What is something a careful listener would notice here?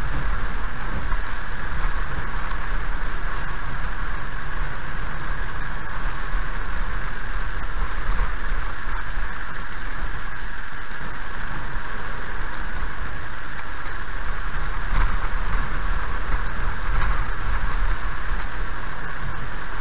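A car drives steadily over a bumpy dirt road.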